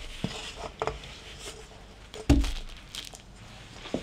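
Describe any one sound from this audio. Dough drops onto a table with a soft thud.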